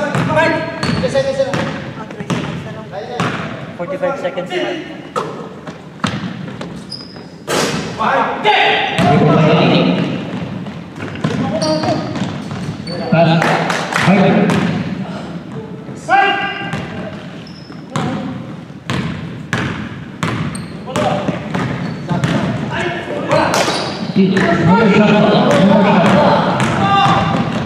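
Men shout and call out to each other across a large echoing gym.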